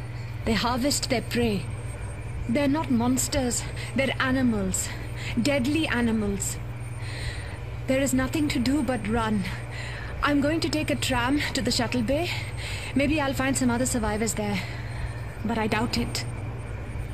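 A young woman speaks calmly through a recording, sounding close.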